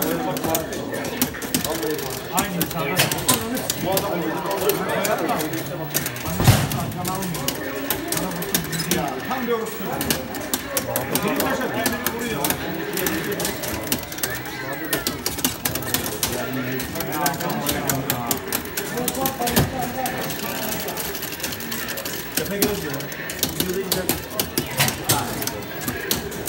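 Punches, kicks and fighter shouts from an arcade fighting game play loudly through a loudspeaker.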